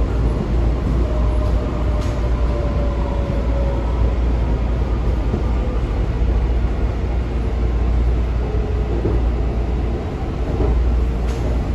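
Wheels squeal faintly on the rails.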